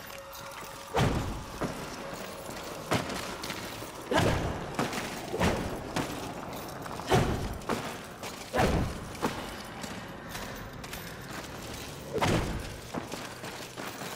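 Heavy footsteps and landings thud on the ground.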